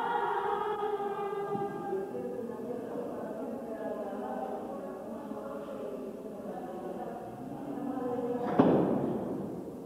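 A tuba plays a deep bass line.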